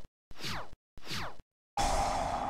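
Quick whooshing effects sweep downward.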